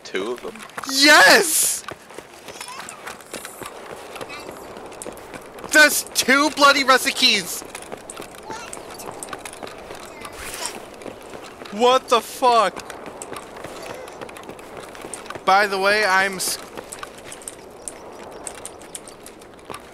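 Footsteps tread steadily on hard pavement.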